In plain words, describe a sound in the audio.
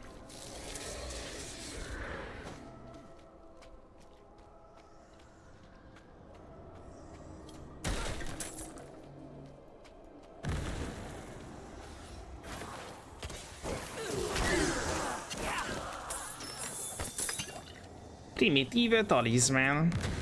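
Game combat sounds of blows and spells crash loudly.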